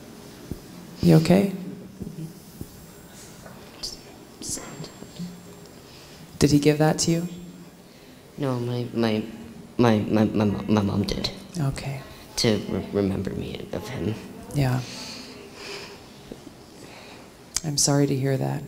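A woman speaks with animation into a microphone over loudspeakers in a large echoing hall.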